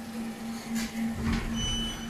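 A lift button clicks as it is pressed.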